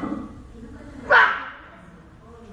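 A man grunts with strain.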